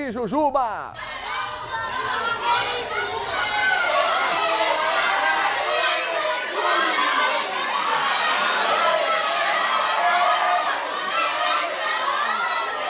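A crowd of people shouts and yells excitedly in an echoing room.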